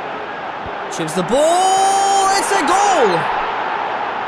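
A stadium crowd roars loudly in a burst of cheering.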